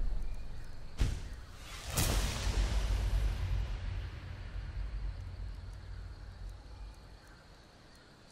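A soft whooshing chime plays as a menu opens, then slowly fades.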